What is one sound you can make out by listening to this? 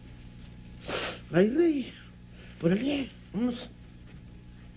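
A man exclaims loudly in short bursts.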